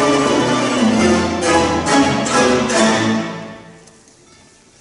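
A plucked string orchestra plays a final chord and fades in a large hall.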